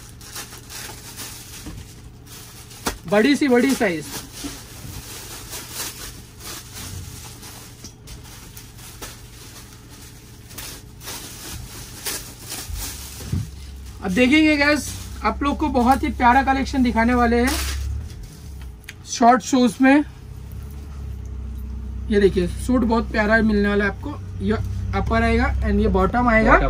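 Cloth rustles as garments are shaken and folded.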